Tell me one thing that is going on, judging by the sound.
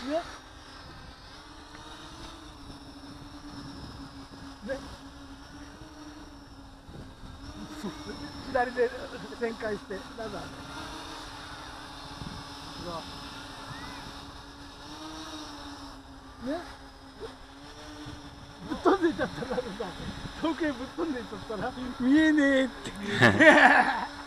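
A small drone's motors hum steadily overhead.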